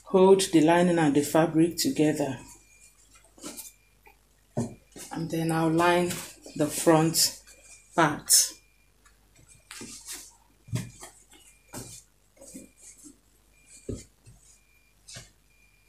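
Fabric rustles as it is handled and folded.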